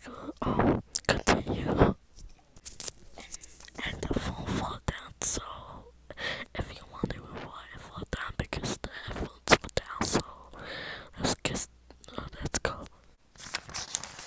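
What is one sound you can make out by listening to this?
A young woman whispers close to a microphone.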